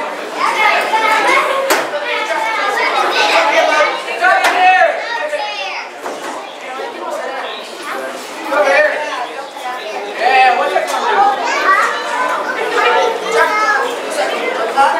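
A crowd of men and women talks and calls out in a large echoing hall.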